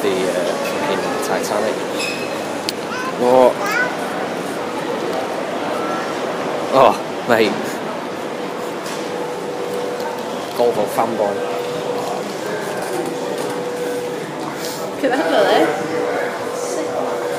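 A crowd murmurs in a large echoing space.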